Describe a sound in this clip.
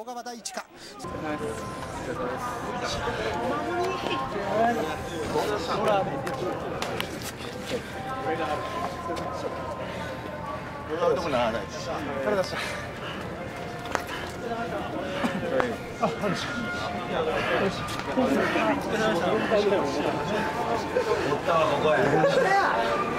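Several men talk and chatter nearby outdoors.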